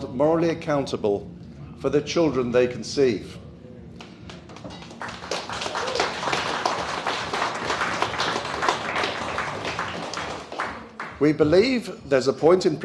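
An older man reads aloud calmly into a microphone.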